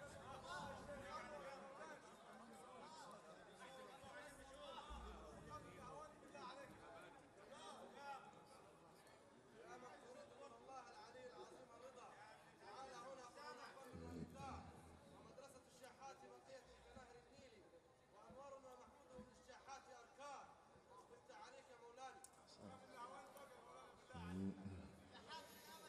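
A large crowd chants together in a big echoing hall.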